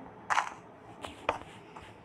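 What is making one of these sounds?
Blocks break with short, sharp crunching knocks.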